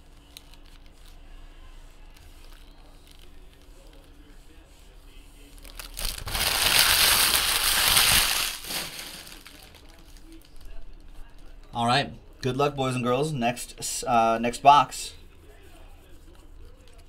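Stacks of trading cards shuffle and rustle in hands.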